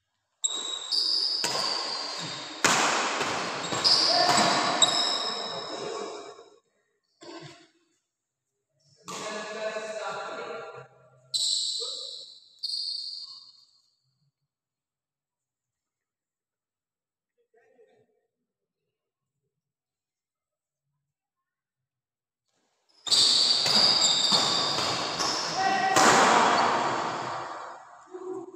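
Sports shoes squeak on an indoor court floor.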